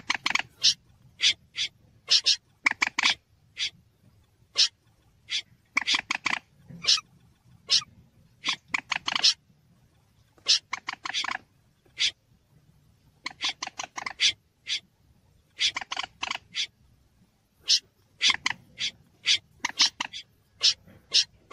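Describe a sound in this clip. A waterbird calls with sharp, rapid clucking bursts, again and again.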